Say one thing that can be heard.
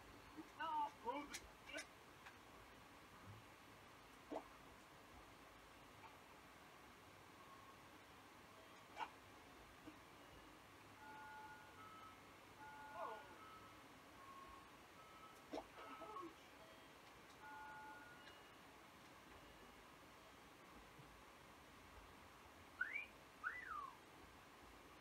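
Short cartoon sound effects chirp and blip.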